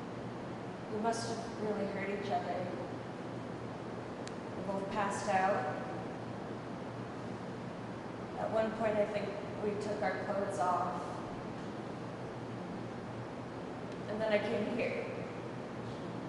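A young man answers quietly, close by.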